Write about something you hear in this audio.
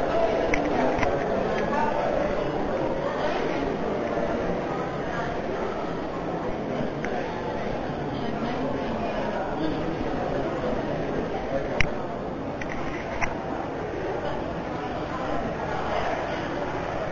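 A crowd of people murmurs and chats in a large echoing room.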